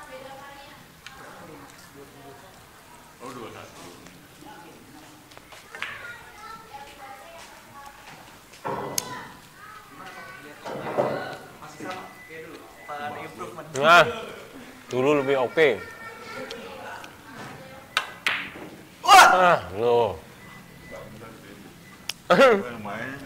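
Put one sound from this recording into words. Pool balls clack sharply together.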